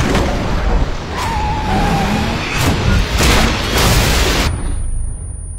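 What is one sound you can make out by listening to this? Heavy logs break apart and crash.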